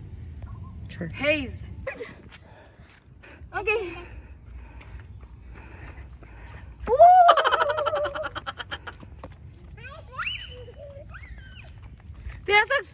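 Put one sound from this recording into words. A young girl squeals with delight.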